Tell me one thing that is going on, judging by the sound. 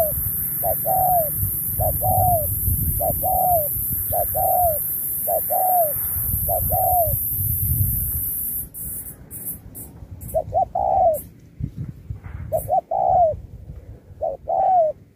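A dove coos over and over in short rhythmic phrases close by.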